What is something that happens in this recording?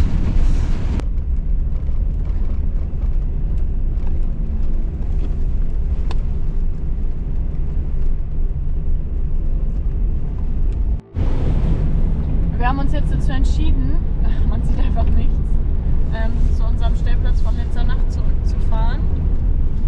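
Wind-driven snow rushes against the windshield.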